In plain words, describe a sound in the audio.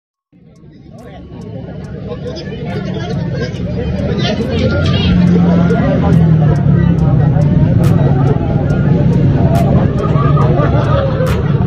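A crowd of men and women talk and shout close by in a packed, noisy space.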